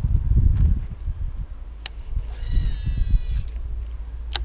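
A fishing reel clicks as its handle is cranked.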